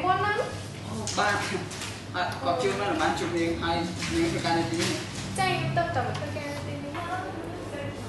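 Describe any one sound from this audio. A young man answers cheerfully and close by.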